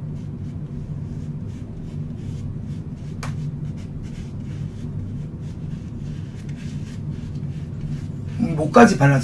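A woman pats her face lightly with a soft puff.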